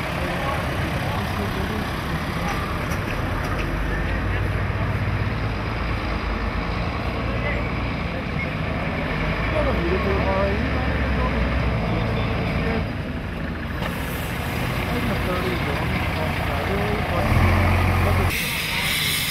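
A fire engine's diesel engine idles nearby with a low rumble.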